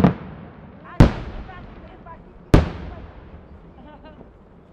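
Fireworks explode with loud booms that echo away.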